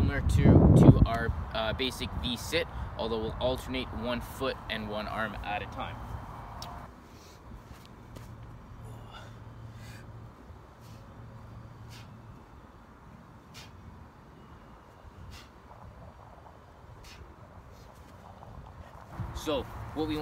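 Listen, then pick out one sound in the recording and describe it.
A young man speaks calmly and clearly, close by, outdoors.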